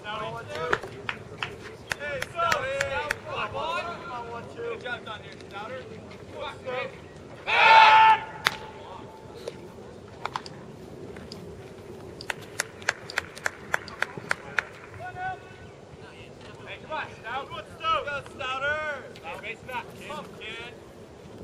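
Young men call out and chatter loudly from a distance outdoors.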